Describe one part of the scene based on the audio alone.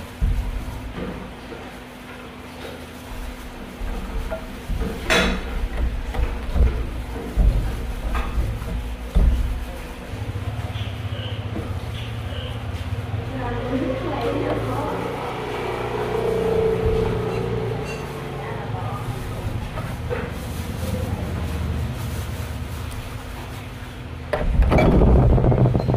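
A plastic glove crinkles and rustles.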